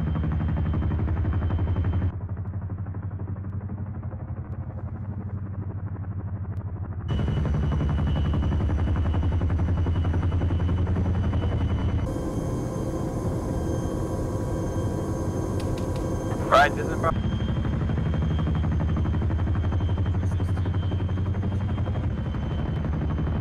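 Helicopter rotors thump steadily and loudly.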